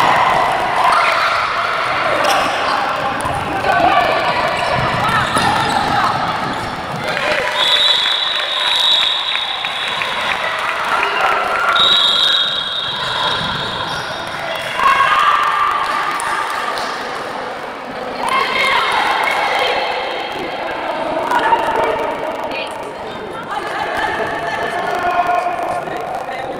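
Young women shout to each other in a large echoing hall.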